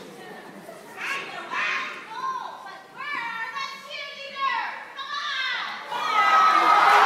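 A young person speaks on stage through a loudspeaker.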